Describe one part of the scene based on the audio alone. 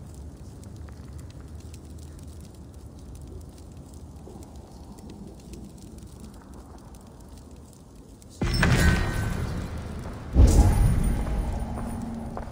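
A torch flame crackles and hisses softly.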